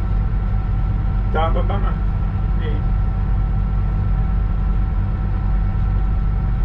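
A train's diesel engine rumbles steadily as the train rolls along the rails.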